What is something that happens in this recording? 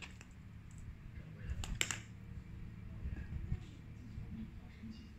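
A cat rustles and bumps a toy against a hard floor.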